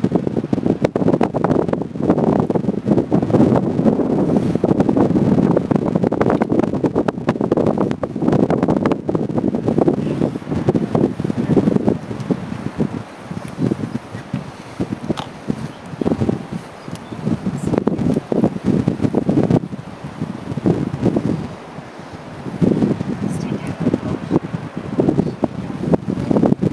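Wind buffets loudly outdoors, rumbling in gusts.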